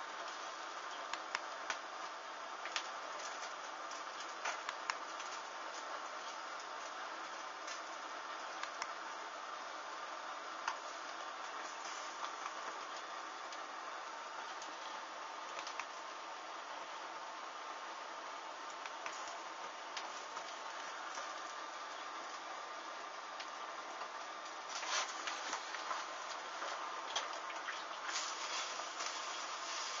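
Flames crackle and hiss as fabric burns close by.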